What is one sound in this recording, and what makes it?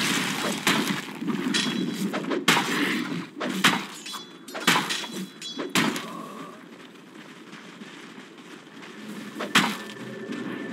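Game combat effects crack and thump in quick bursts.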